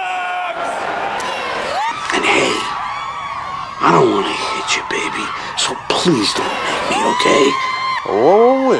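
A large crowd cheers in a stadium.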